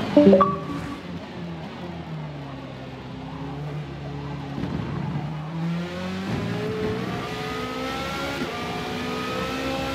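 A race car engine drones low through a corner, then revs up high as the car speeds away.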